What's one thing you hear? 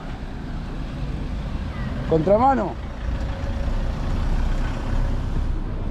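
A pickup truck drives past close by.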